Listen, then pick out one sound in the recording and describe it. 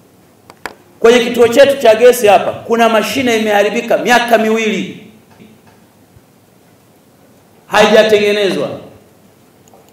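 A man speaks forcefully into a microphone.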